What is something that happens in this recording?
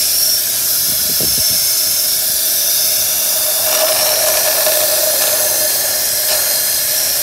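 A hose sucks air with a steady hiss.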